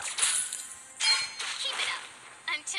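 Game spell effects burst with bright chiming blasts.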